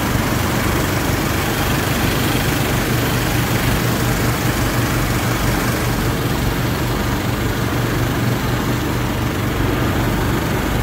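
A blower fan roars with a rushing whoosh.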